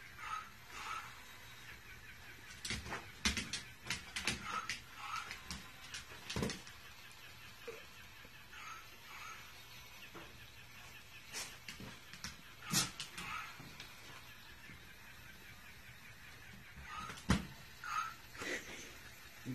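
A rubber toy squeaks repeatedly.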